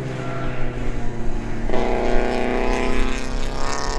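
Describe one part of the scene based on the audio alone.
Tyres squeal as a car slides on the track.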